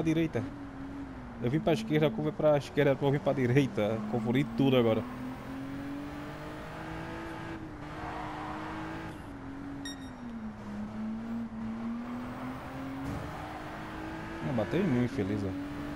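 A car engine hums steadily, its pitch dipping and rising with speed.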